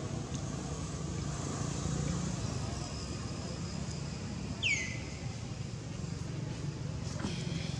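A monkey chews and bites into juicy fruit.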